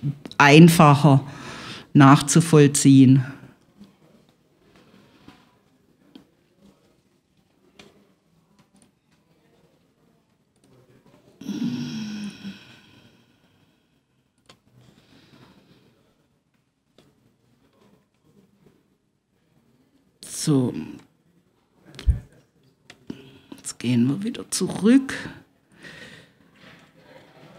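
A middle-aged man speaks calmly into a close microphone, in bursts with long pauses.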